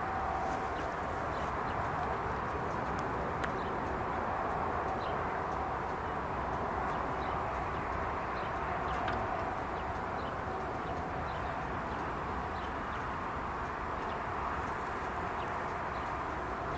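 A level crossing bell rings steadily.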